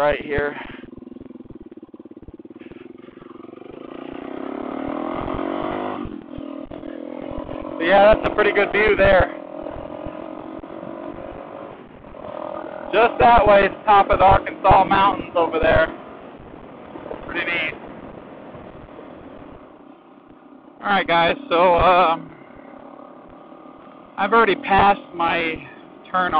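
A motorcycle engine hums steadily and revs as the bike speeds up.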